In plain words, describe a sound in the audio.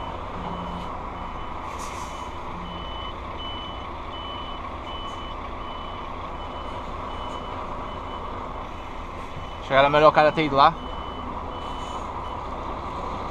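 A truck's turn signal beeps at an even pace.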